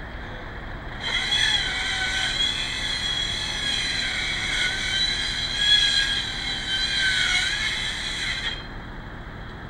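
A flock of waterbirds calls from across open water.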